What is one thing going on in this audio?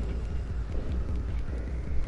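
Small footsteps patter quickly across a hard floor.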